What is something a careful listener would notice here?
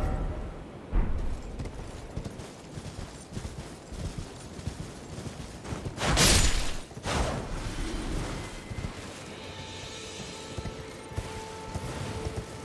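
A horse gallops with thudding hooves.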